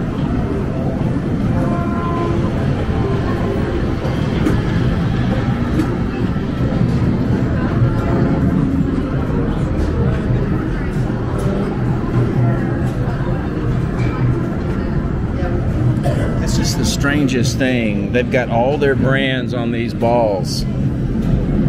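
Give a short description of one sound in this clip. Game machines hum and chime in a steady din in a busy arcade.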